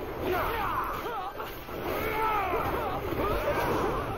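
Fiery blasts whoosh and roar.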